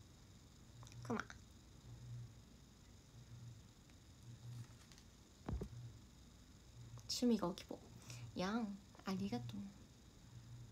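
A young woman speaks softly and playfully close to a microphone.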